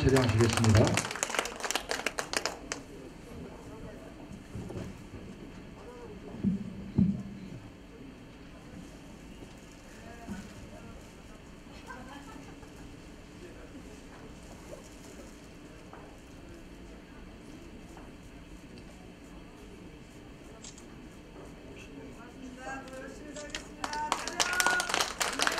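A group of people claps and applauds.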